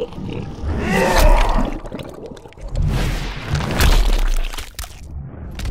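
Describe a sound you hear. A magical energy blast whooshes and crackles loudly.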